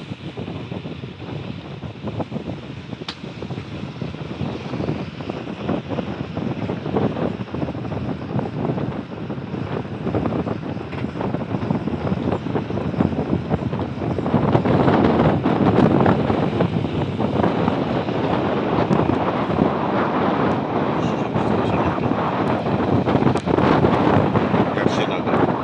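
Wind buffets and roars loudly outdoors, growing stronger partway through.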